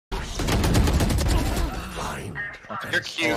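Rapid gunshots ring out in bursts.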